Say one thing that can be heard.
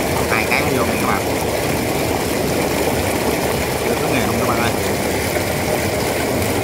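Wet sand slurry gushes and splashes steadily from a large pipe close by.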